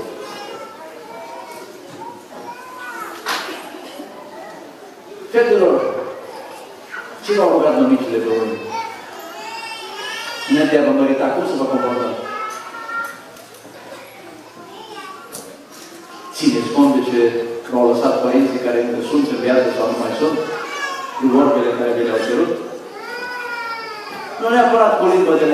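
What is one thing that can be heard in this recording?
A middle-aged man speaks calmly into a microphone, heard through a loudspeaker in a large room.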